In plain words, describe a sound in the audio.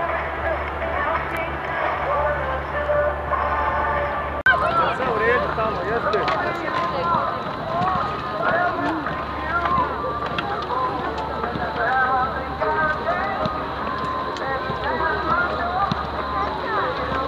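A crowd of children and adults chatter and shout outdoors.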